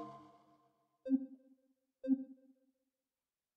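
Short soft chimes sound as menu options are picked.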